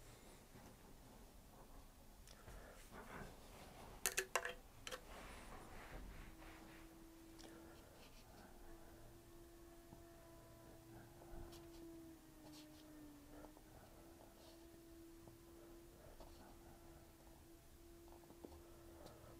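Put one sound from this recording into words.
A paintbrush brushes softly on paper.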